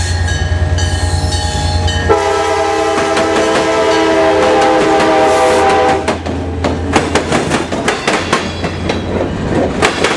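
A diesel locomotive engine rumbles deeply as it passes.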